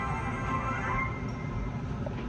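A short sparkling musical chime plays through a television loudspeaker and fades.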